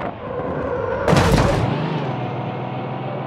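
Something crashes with a loud splash.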